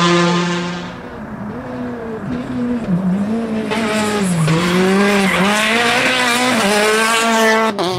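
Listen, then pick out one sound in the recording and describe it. A rally car engine revs up and down through gear changes as the car approaches and passes close by.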